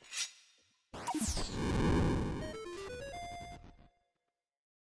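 A loud magical whoosh swells and rings out.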